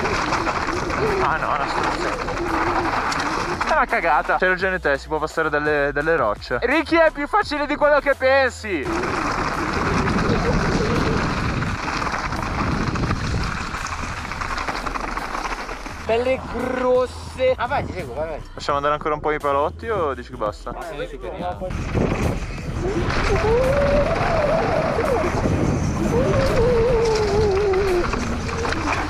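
Bike tyres crunch and rattle over a rocky trail.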